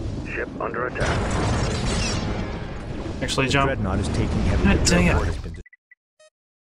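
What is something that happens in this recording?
A huge explosion booms and roars.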